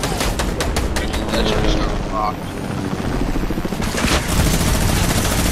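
Rapid gunshots crackle in quick bursts.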